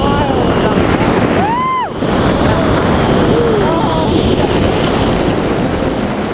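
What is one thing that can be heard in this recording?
Strong wind roars past a microphone.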